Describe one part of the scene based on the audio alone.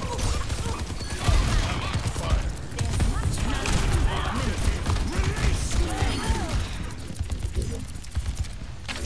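A rifle fires rapid shots in a video game.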